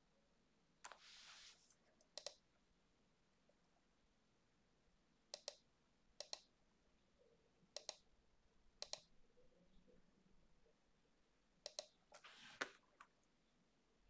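A computer mouse clicks close by, often in quick pairs.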